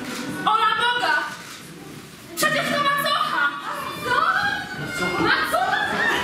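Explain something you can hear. A young woman speaks with feeling in a large hall.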